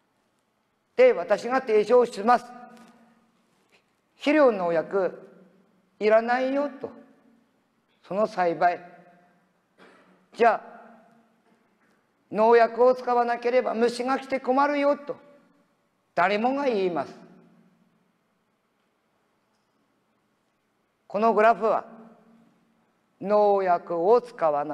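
An elderly man speaks calmly through a microphone in a large, echoing hall, pausing between phrases.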